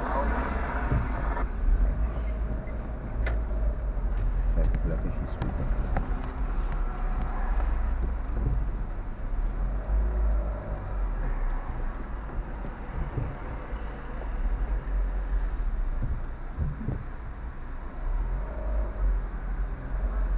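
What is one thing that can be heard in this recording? A car engine rumbles low from inside the cabin as the car creeps forward slowly.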